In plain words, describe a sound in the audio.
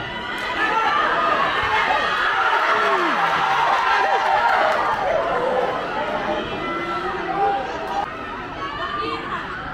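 A crowd of spectators shouts and chatters outdoors.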